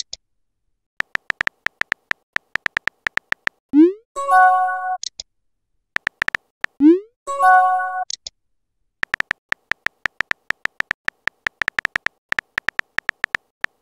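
Keyboard taps click in quick bursts.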